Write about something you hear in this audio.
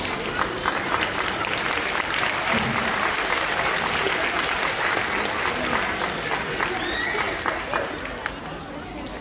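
Children clap their hands.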